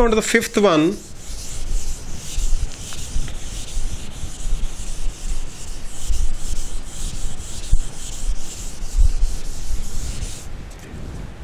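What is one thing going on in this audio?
An eraser rubs steadily across a whiteboard.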